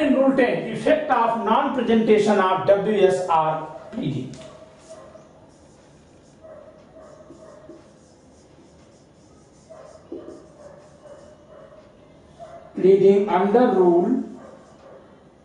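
A man speaks calmly and clearly nearby, in a slightly echoing room.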